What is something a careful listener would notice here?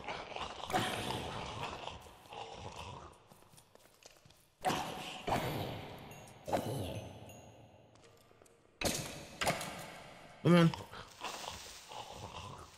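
A pick strikes and breaks stone blocks with short crunching knocks.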